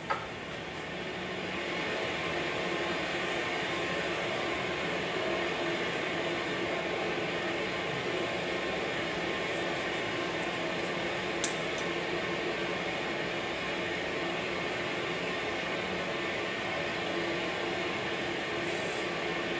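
A woman lectures calmly through a microphone in a room with some echo.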